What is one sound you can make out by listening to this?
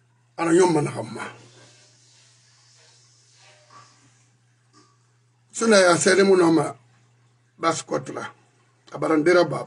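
A middle-aged man speaks into a close microphone with animation, in short bursts.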